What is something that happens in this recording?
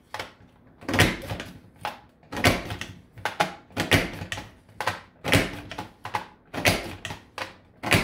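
A paper punch clunks down again and again.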